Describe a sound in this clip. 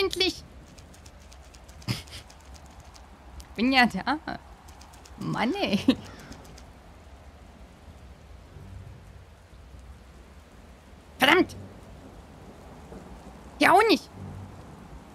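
A young woman talks and laughs into a close microphone in short bursts.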